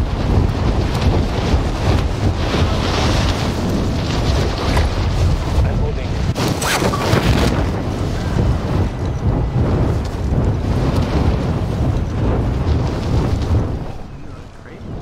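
Wind roars loudly during a fall through the air.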